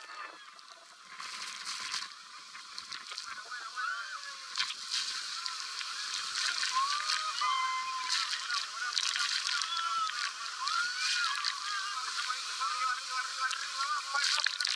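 Water sprays and splashes loudly against a speeding boat.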